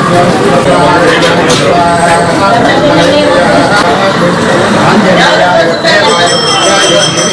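A crowd of men talk and call out all at once, close by.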